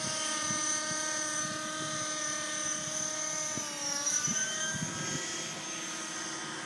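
A nitro-engined radio-controlled model helicopter whines high overhead, its pitch dipping as it turns.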